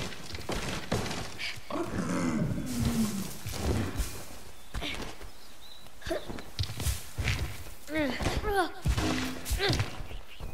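Footsteps patter quickly over grass and stone.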